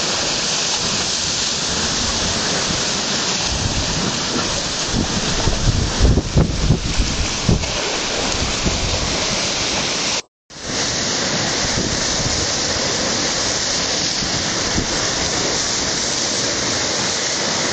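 Surf roars steadily outdoors.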